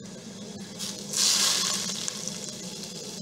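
Oil sizzles briefly in a hot pan.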